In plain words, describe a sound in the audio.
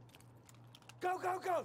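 A man speaks loudly and close to a microphone.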